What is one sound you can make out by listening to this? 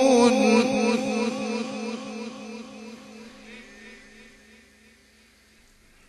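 A man chants a long, wavering note through a microphone with heavy echo, slowly fading away.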